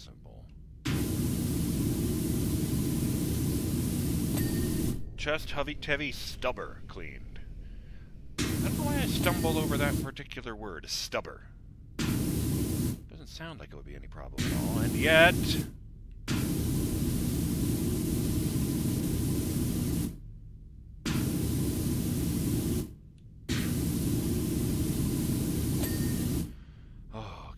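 A pressure washer sprays in steady hissing bursts.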